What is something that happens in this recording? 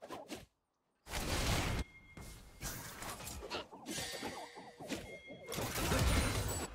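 Video game battle sound effects clash and burst.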